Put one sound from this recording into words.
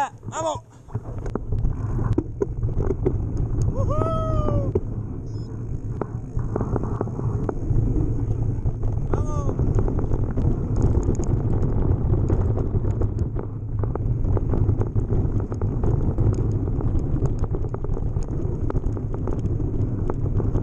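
Bike tyres rumble and crunch over a dirt trail.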